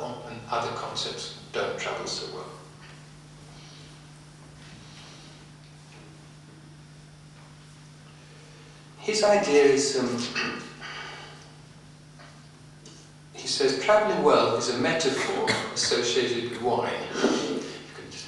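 A man speaks calmly into a microphone, with pauses.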